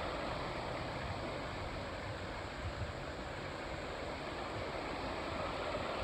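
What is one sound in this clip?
A shallow stream rushes and gurgles steadily over stones.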